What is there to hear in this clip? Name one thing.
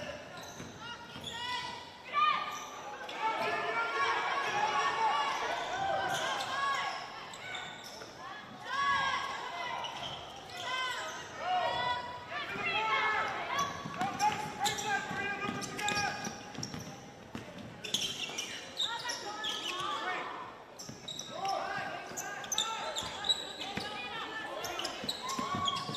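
Sneakers squeak sharply on a hard court in an echoing gym.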